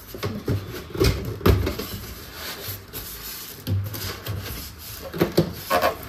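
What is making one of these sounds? A cardboard box rustles and its flaps knock as it is handled.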